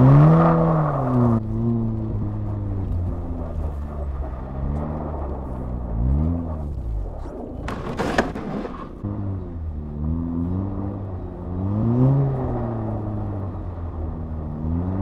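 A car engine revs up and down, heard from inside the car.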